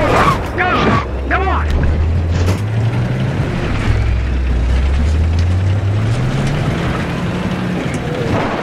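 A tank engine rumbles steadily and revs up.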